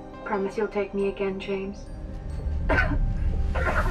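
A woman speaks softly and calmly, close by.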